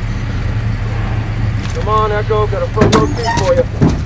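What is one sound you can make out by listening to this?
A vehicle door clicks open.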